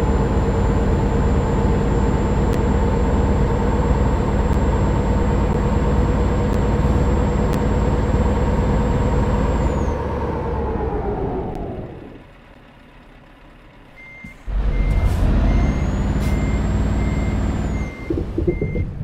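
A truck engine drones steadily, then dies away and starts again briefly.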